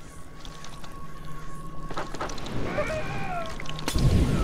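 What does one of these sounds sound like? Blades slash and clash in a fierce fight.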